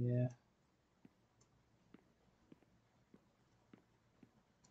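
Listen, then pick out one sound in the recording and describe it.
Footsteps tap steadily on hard blocks.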